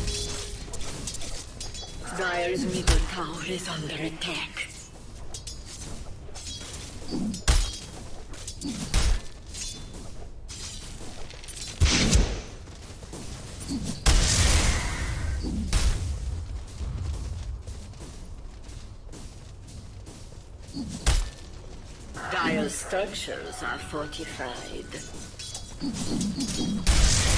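Combat sound effects of clashing blows and bursting spells ring out.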